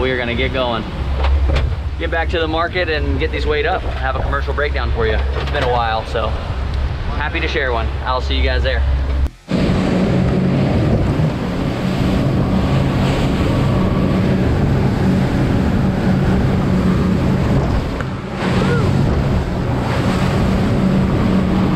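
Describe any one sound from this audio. Waves and spray rush against a boat's hull, outdoors in wind.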